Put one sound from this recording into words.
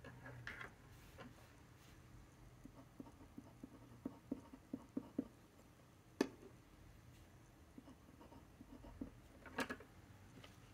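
A pen nib scratches softly on paper.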